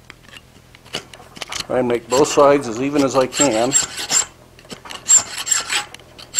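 A metal rod scrapes and taps against a small piece of metal.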